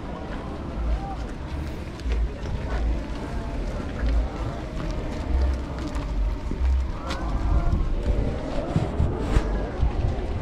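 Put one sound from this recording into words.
Wind rumbles against the microphone.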